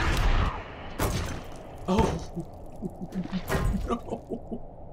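Heavy thuds and crashes ring out.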